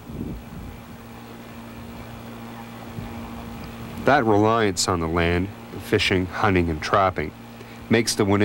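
A small outboard motor drones steadily on the water.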